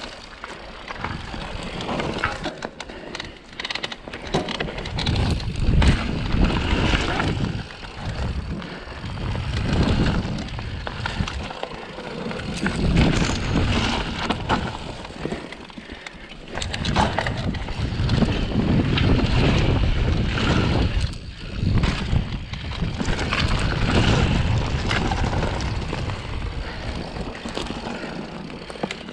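A bicycle rattles and clunks over bumps.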